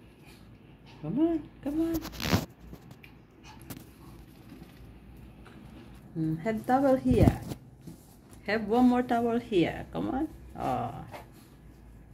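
A small puppy whines and yelps close by.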